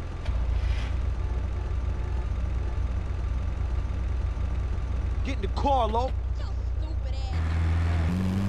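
A van engine idles with a low rumble.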